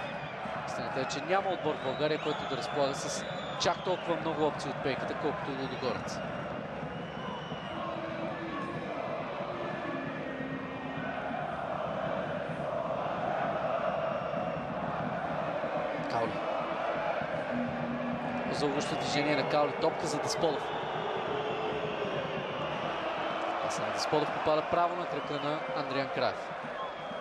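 A large stadium crowd chants and roars in the open air.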